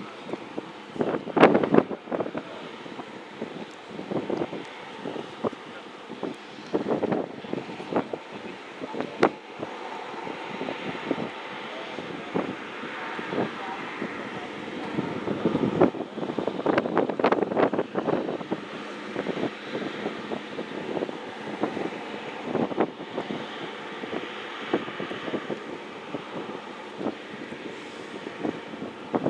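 A high-speed catamaran ferry's engines rumble across the water.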